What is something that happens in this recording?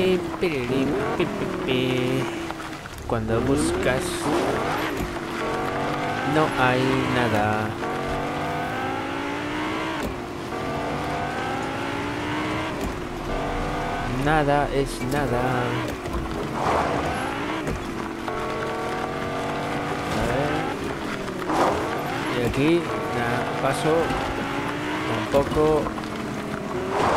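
A car engine revs hard, its pitch rising and falling as the car speeds up and slows down.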